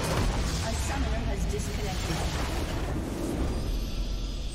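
Magic blasts crackle and boom in a busy battle.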